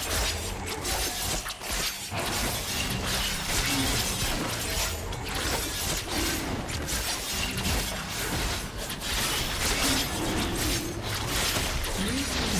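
Fantasy battle sound effects of magic blasts and hits clash repeatedly.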